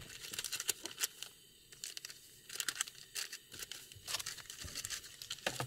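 A paper packet crinkles and rustles in someone's hands.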